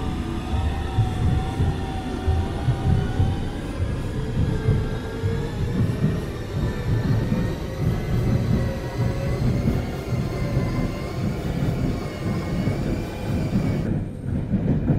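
A train's motor whines and rises in pitch.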